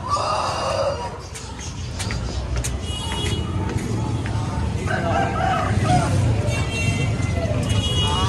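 Footsteps scuff on concrete steps.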